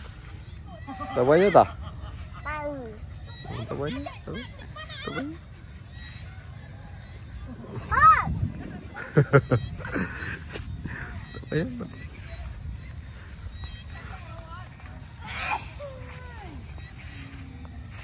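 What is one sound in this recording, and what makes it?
A young child talks and squeals close by.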